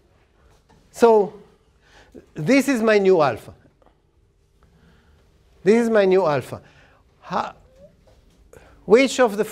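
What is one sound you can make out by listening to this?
An older man speaks calmly and deliberately, as in a lecture, in a room with slight echo.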